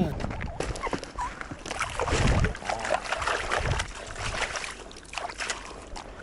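Small hands splash and slap in shallow water.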